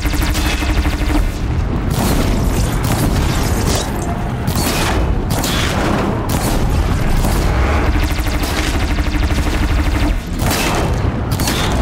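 Energy blasts crackle and explode repeatedly.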